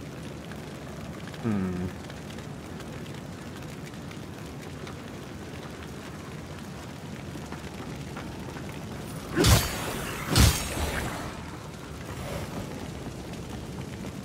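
Flames crackle steadily.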